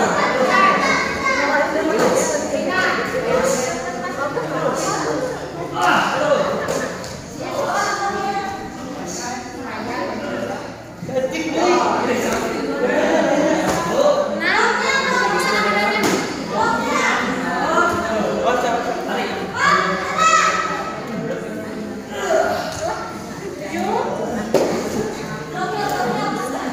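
Children shout sharply in a large echoing hall.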